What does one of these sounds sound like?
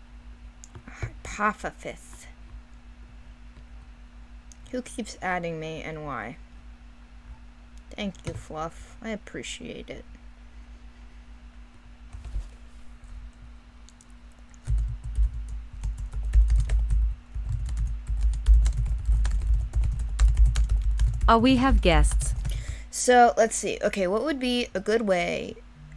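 A young woman talks with animation through a microphone.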